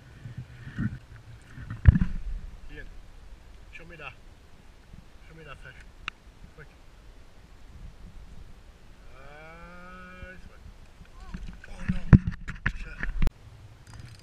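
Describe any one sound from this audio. A man talks calmly outdoors on open water.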